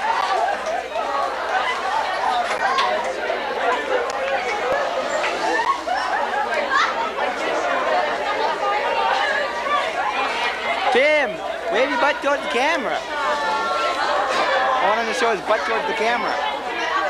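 A young woman laughs and shrieks.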